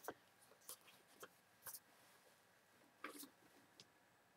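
A sheet of paper rustles softly.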